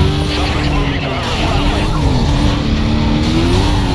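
Cars crash and scrape against each other.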